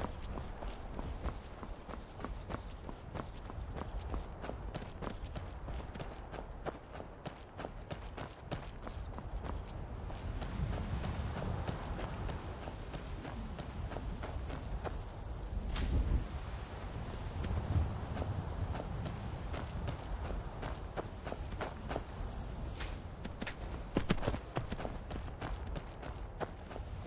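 Footsteps crunch over stone and grass at a steady walking pace.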